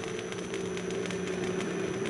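A damaged laser emitter crackles with sparks.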